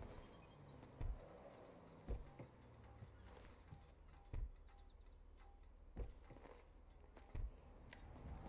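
Car doors thud open and shut.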